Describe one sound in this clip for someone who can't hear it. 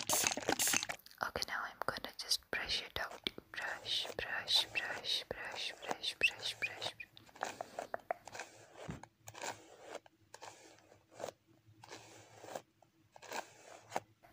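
Hands rustle and brush close by.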